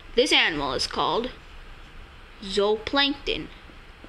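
A pencil scratches on paper.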